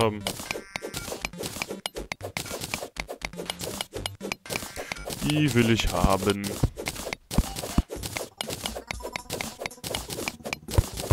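A pickaxe chips at rock in quick, repeated strikes.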